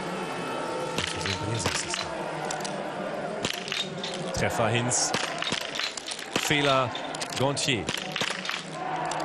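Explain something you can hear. Rifle shots crack one after another.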